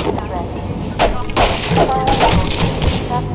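A crowbar smashes and splinters wooden boards.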